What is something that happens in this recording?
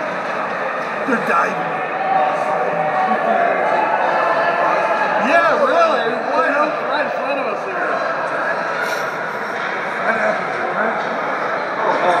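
Young children shout and call out across a large echoing ice rink.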